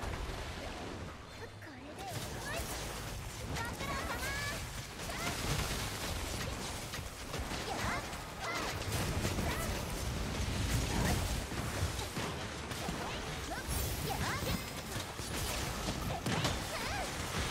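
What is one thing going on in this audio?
A large monster roars and growls.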